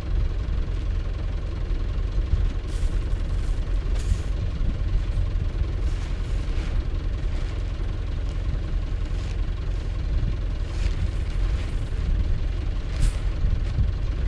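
Wind gusts and rumbles across an open field.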